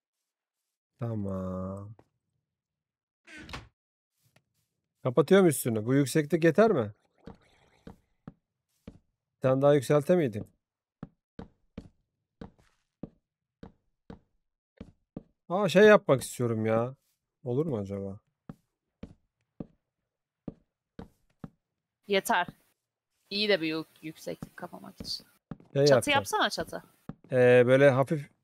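A young man talks with animation into a microphone, close by, in short bursts.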